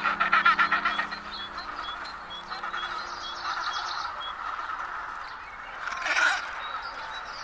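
A crowded penguin colony squawks and trumpets close by.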